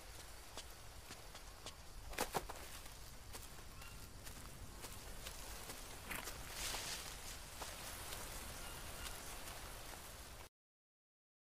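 Footsteps crunch and rustle through leafy undergrowth.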